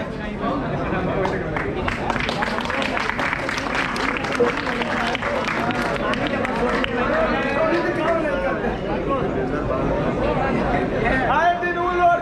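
A crowd of young men murmurs and talks together outdoors.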